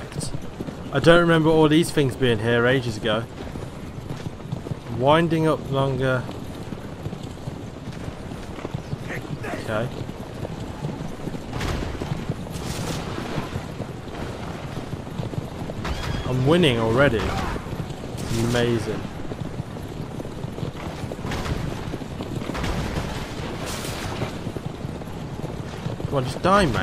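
Carriage wheels rumble steadily over a rough road.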